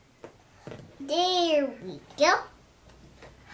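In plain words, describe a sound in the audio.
A small child squeals in a high voice.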